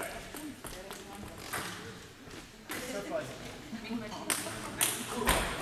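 Table tennis balls click against bats and tables in a large echoing hall.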